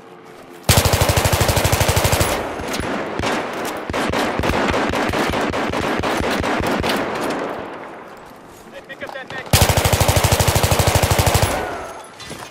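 A rifle fires rapid bursts of automatic gunfire at close range.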